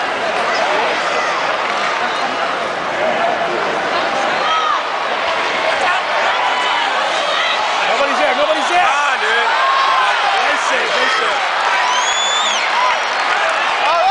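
A large arena crowd cheers and shouts loudly, echoing.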